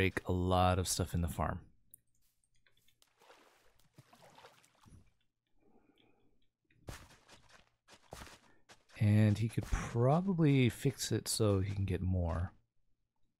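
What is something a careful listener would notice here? A hoe tills soil with short, soft crunches.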